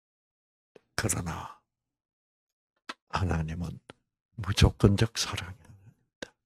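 An elderly man speaks with animation into a microphone, heard through a loudspeaker, in short bursts.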